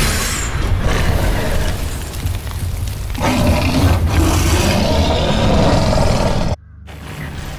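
A monster roars and snarls loudly.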